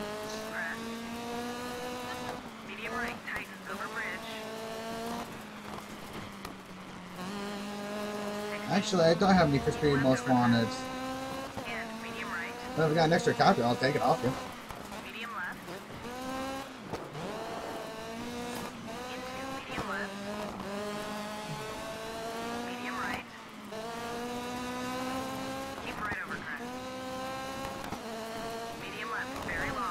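A rally car engine revs high and shifts gears.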